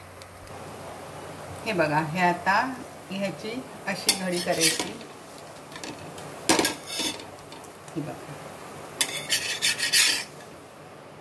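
A metal spatula scrapes and taps against an iron pan.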